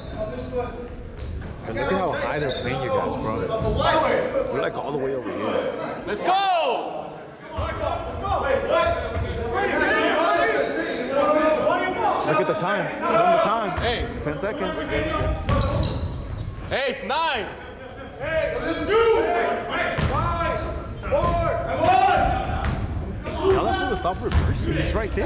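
Young men call out and shout to each other across the hall.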